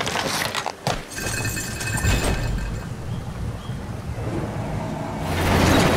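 A large wooden gear grinds and clatters as it turns.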